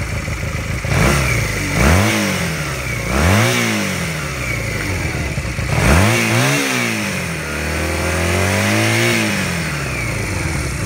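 A motorcycle engine revs up sharply and falls back several times.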